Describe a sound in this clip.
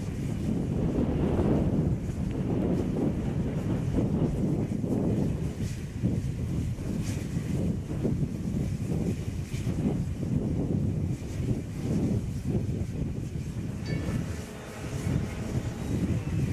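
A steam locomotive chuffs heavily, with rhythmic bursts of exhaust.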